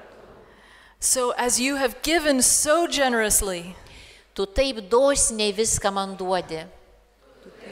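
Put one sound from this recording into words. A middle-aged woman sings through a microphone and loudspeakers.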